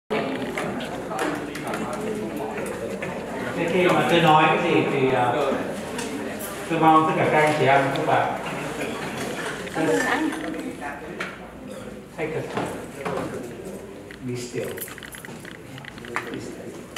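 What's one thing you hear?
A middle-aged man speaks with feeling into a microphone in a large room.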